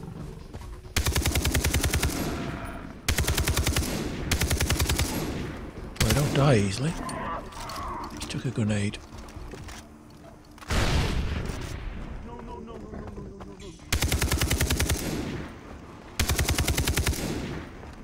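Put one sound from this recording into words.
A rifle fires in loud rapid bursts.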